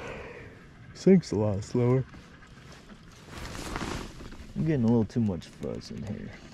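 A man speaks briefly close to the microphone.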